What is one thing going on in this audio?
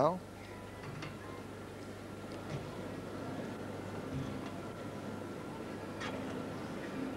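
Gymnastics bars knock and rattle as a gymnast swings.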